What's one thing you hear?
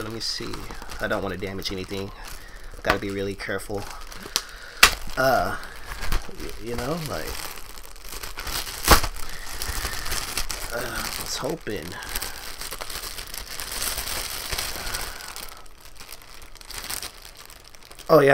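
Paper and plastic wrapping rustle and crinkle as they are torn open.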